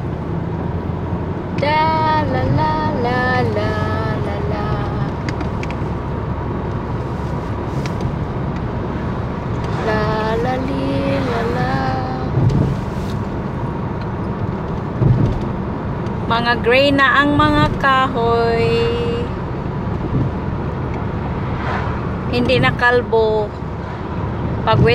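A car engine hums steadily with road noise from inside a moving car.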